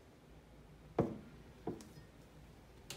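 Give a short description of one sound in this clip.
A ceramic mug is set down on a hard counter with a knock.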